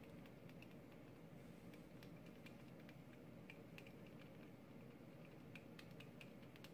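A glass dropper clicks lightly against a test tube.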